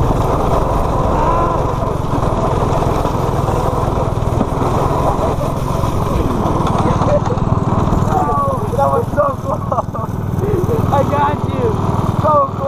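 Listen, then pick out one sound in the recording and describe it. A small engine buzzes steadily at close range.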